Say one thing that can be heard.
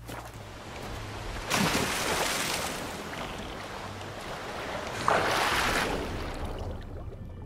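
Water splashes as a swimmer strokes through it.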